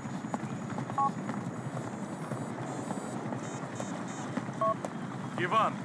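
A mobile phone beeps.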